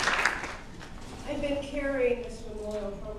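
A woman speaks into a microphone in a large hall.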